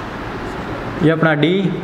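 A young man speaks calmly nearby.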